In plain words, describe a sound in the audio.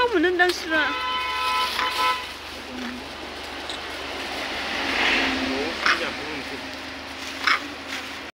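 Monkeys scamper over dry leaves, rustling them.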